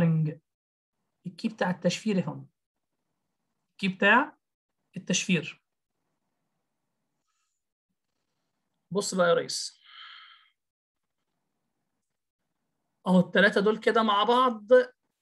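A man speaks calmly into a close microphone, pausing between phrases.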